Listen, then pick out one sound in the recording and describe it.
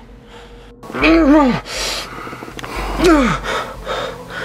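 A man cries out in anguish close by.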